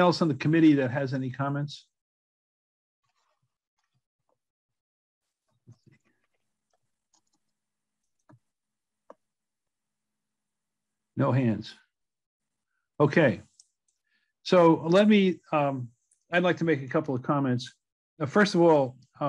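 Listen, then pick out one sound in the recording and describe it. An elderly man speaks calmly, close to a microphone, as if on an online call.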